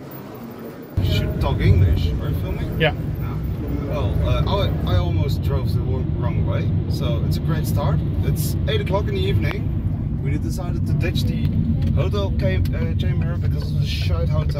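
A car engine and tyres rumble steadily on a road.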